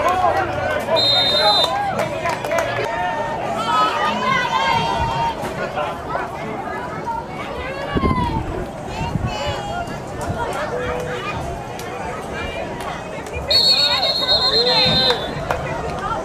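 A referee's whistle blows short, shrill blasts.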